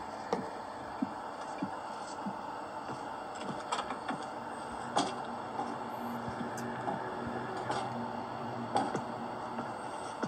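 Fingertips tap softly on a glass touchscreen.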